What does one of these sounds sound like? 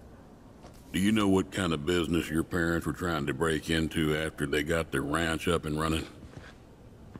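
A man speaks calmly in a low, drawling voice.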